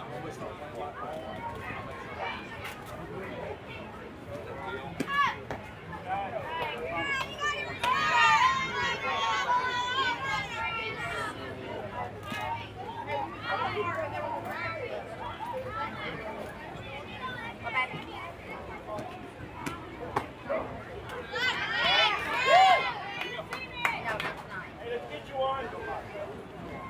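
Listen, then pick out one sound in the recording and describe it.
Young girls chant and cheer loudly outdoors.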